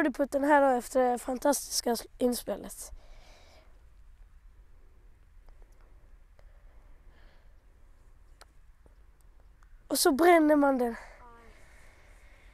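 A child speaks with animation close by.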